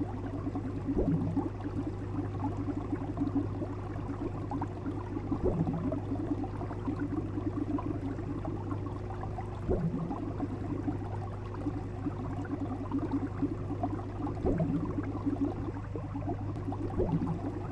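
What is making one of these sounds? Water bubbles and gurgles steadily.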